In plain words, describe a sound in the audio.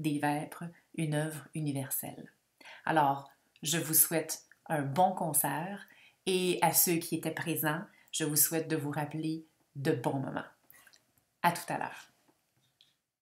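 A woman speaks warmly and with animation into a close microphone, as on an online call.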